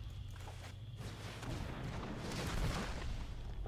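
A magical blast whooshes and rumbles loudly.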